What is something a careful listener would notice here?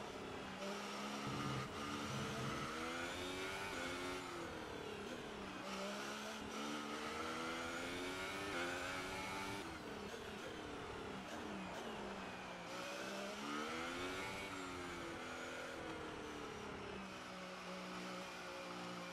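A racing car engine screams at high revs, rising and falling in pitch.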